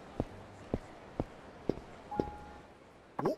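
Footsteps tap on pavement at a steady pace.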